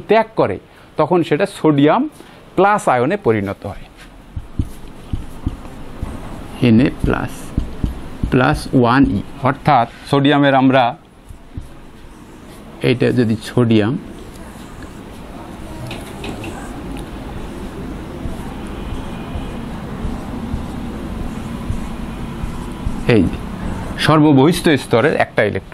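A man speaks calmly into a clip-on microphone, explaining.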